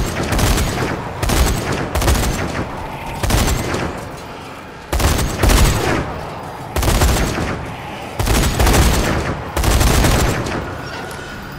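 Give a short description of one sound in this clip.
A heavy machine gun fires in loud bursts.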